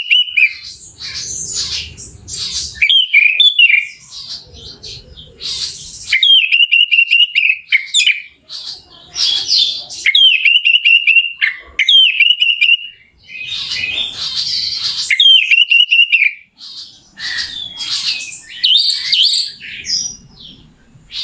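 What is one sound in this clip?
A small bird sings loud, varied whistles and chirps close by.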